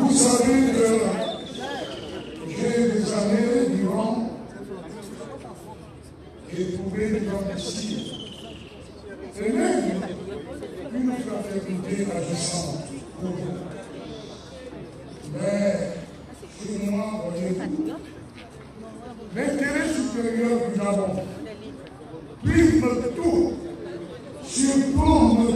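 A man speaks through a microphone and loudspeaker outdoors in slow, measured phrases.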